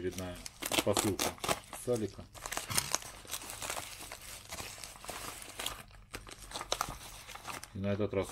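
Paper crinkles and rustles as it is torn open.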